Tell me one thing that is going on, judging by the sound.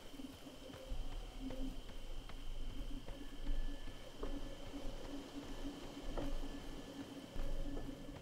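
Footsteps crunch on the ground.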